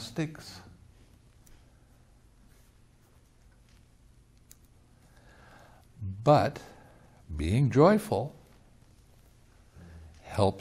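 An elderly man speaks calmly and expressively into a nearby microphone, with long pauses.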